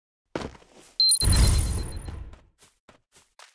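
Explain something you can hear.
A rifle shot booms and rumbles away.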